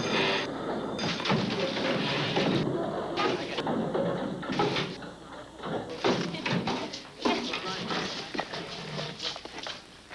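Students chatter and move about in an echoing room.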